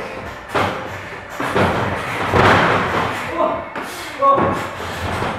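Bodies slam down hard with loud thuds.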